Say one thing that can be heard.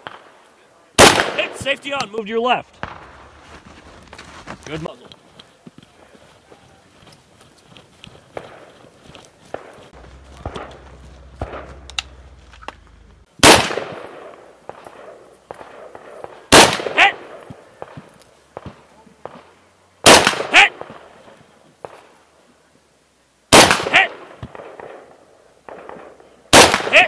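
A shotgun fires loud, sharp blasts outdoors, each followed by a short echo.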